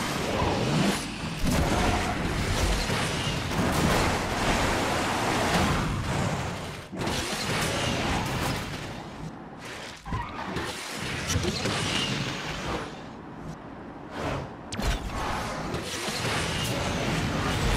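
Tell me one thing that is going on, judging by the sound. Nitro boosts whoosh loudly.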